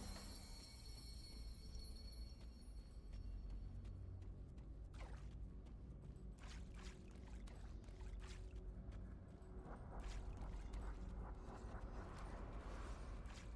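Footsteps patter steadily across stone.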